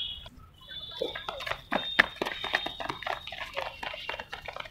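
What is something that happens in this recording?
Children's feet patter quickly on concrete as they run.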